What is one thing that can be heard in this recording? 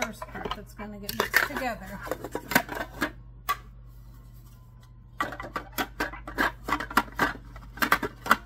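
A plastic cover clatters and clicks against a metal bowl.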